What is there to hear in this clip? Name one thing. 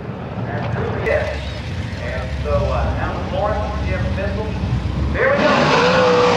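Drag racing engines idle with a loud, lumpy rumble.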